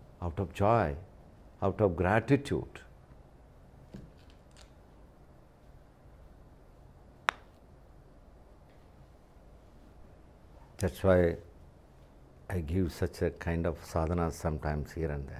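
An elderly man speaks calmly and expressively into a close microphone, with pauses.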